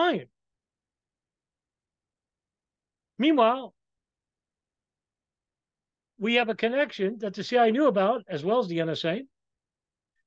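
A middle-aged man speaks with animation over an online call, in short bursts with pauses.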